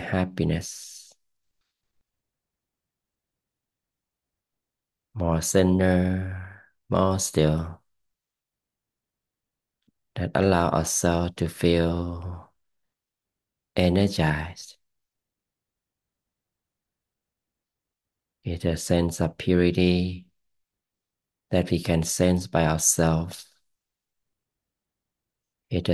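A man speaks calmly into a close microphone, with pauses.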